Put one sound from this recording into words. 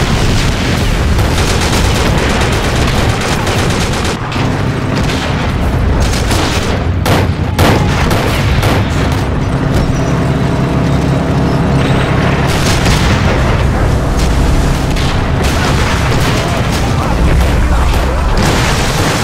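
Explosions boom and rumble now and then.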